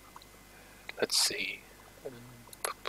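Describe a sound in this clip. A young man speaks briefly and quietly into a headset microphone.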